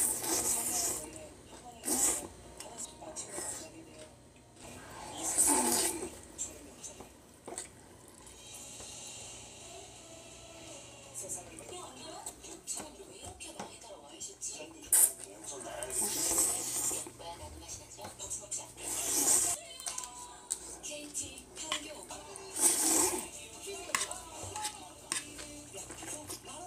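A young woman chews food with her mouth full.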